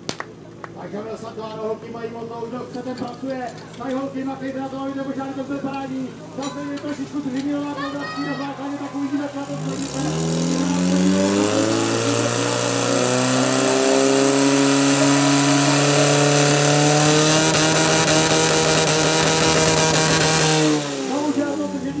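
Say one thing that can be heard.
A pump engine runs and revs up loudly.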